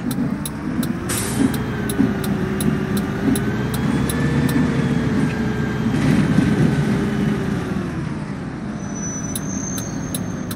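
A bus engine revs up and rises in pitch as the bus pulls away.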